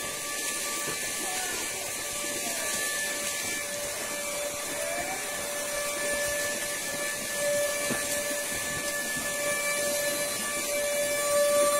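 Oxen hooves splash and squelch through mud.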